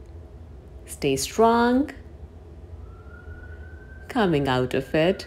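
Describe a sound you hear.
A young woman speaks calmly and clearly nearby.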